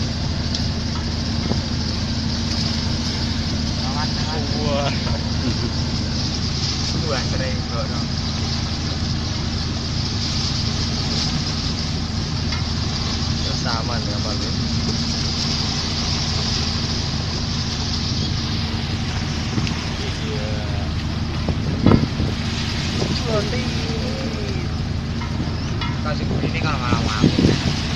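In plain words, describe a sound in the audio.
Choppy waves splash and slap nearby.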